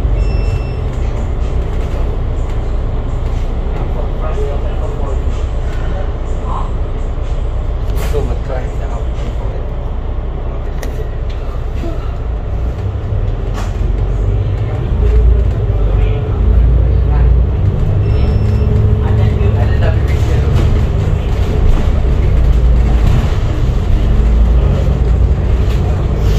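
Traffic drones past on a busy road.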